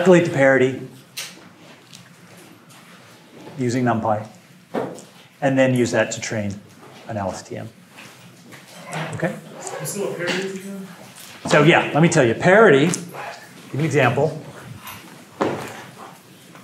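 A middle-aged man speaks calmly and clearly.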